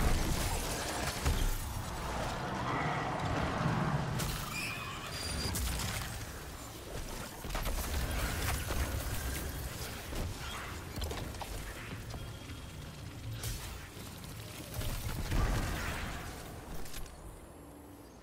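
Guns fire in rapid bursts with loud blasts and explosions.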